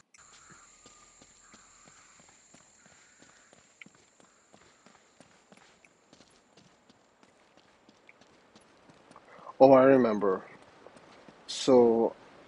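Footsteps crunch softly on a dirt path.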